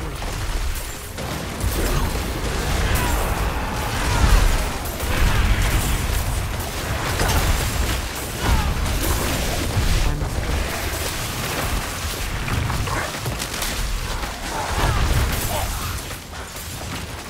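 Game spells crackle and boom in a dense battle.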